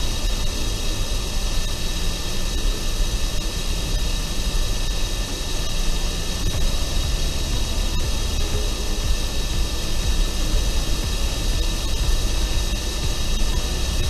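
A handheld vacuum cleaner whirs steadily.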